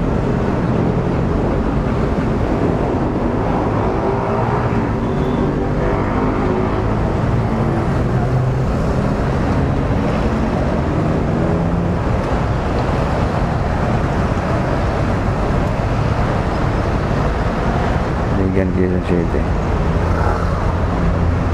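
Other motorcycle engines putter nearby in traffic.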